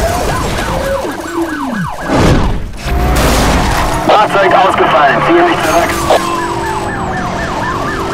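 A police siren wails repeatedly.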